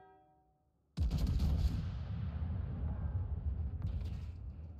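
Heavy naval guns fire a loud booming salvo that rumbles on.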